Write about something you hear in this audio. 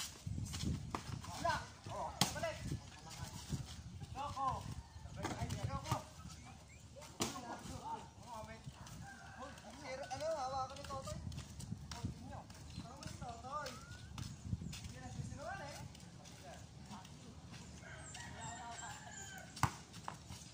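Boys shout and call out to each other outdoors, some way off.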